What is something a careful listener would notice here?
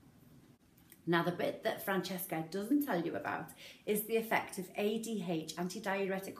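A woman speaks with animation, close to a microphone.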